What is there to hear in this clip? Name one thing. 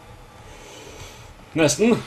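A man speaks into a close microphone with surprise.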